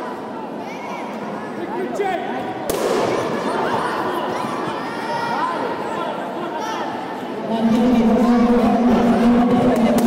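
Kicks thud against padded body protectors in a large echoing hall.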